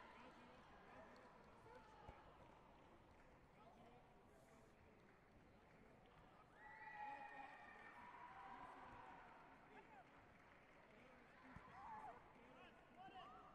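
A large crowd murmurs and calls out in an echoing hall.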